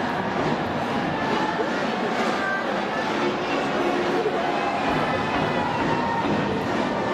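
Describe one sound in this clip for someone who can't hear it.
A large crowd in a stadium cheers and chants steadily.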